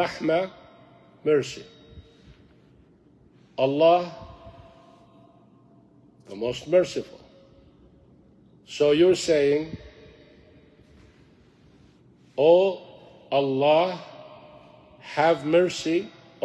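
A middle-aged man speaks with animation in short bursts and long pauses, close to a microphone.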